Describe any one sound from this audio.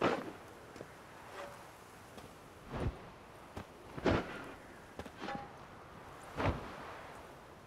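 Heavy boots step slowly on stone.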